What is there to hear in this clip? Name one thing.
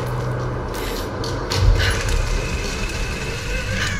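A pulley whirs along a taut rope.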